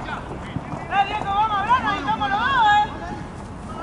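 Young men shout loudly to each other outdoors.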